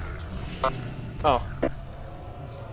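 Sharp magical zaps ring out in quick bursts.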